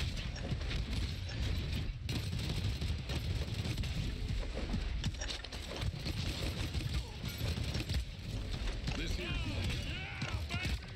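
Video game gunfire blasts rapidly and steadily.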